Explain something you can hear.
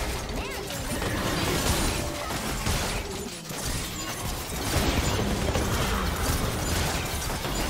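Magic spells crackle and burst during a fierce video game battle.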